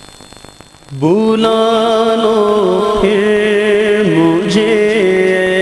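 A man sings loudly and with long held notes through a microphone.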